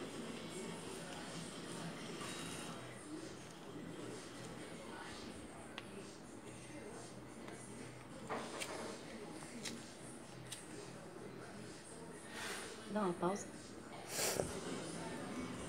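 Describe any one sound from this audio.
Orange peel tears and crackles softly.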